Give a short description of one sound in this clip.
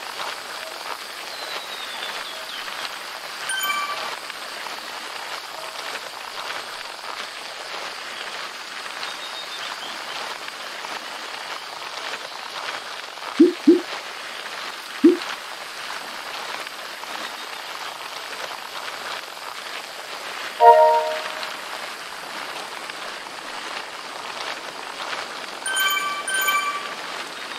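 A bicycle trainer whirs steadily as someone pedals.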